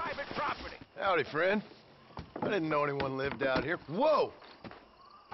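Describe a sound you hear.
A man speaks in a gruff, wary voice.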